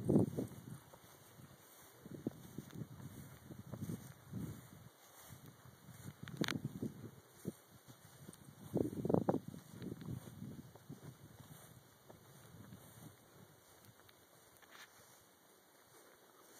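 Dogs scuffle and romp on grass.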